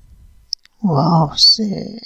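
A hand shifts soft peeled pieces on a plate.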